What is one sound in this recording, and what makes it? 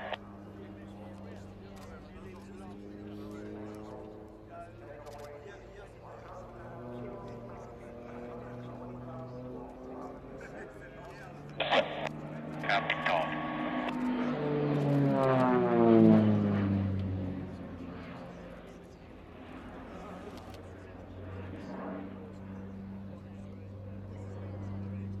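A propeller plane's engine drones and whines as it rises and falls in pitch while the plane loops overhead.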